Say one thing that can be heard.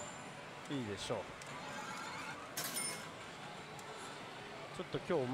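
A slot machine plays electronic music and sound effects.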